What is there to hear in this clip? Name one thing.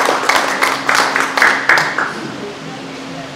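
A small audience claps indoors, then the applause dies away.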